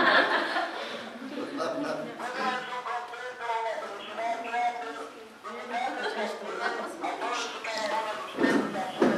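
A small crowd laughs nearby.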